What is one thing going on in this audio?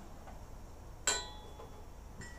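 A metal pot clanks against a gas stove.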